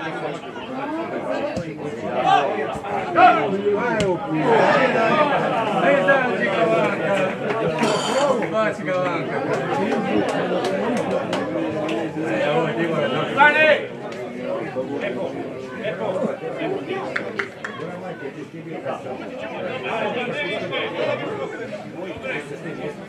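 A football thuds as players kick it on an open pitch.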